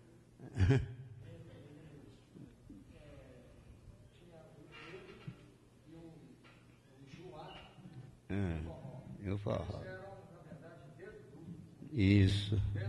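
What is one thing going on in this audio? An elderly man speaks calmly into a microphone, heard through a loudspeaker in a room.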